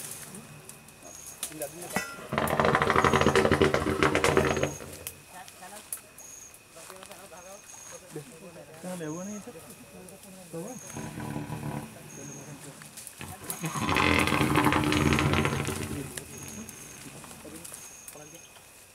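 Leaves and branches rustle as men push through bushes.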